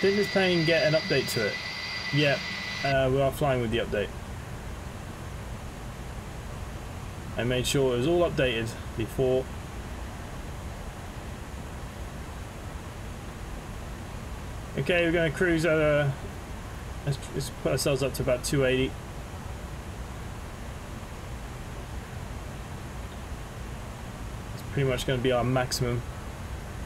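A man talks calmly into a headset microphone, close by.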